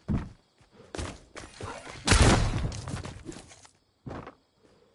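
A pickaxe strikes wood with heavy thuds.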